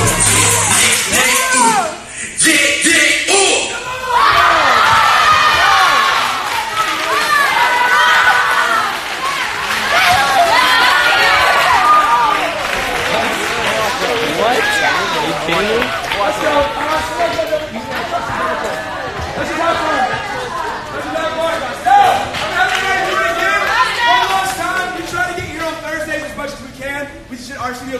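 A crowd of young people cheers and shouts excitedly nearby.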